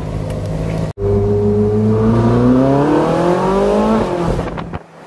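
A sports car engine revs and accelerates as the car drives off.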